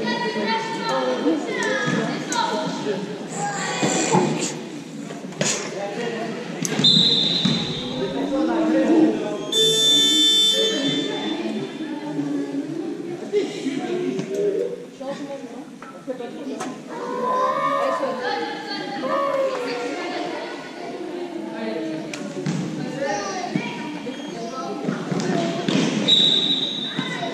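Children shout and call out across a large echoing sports hall.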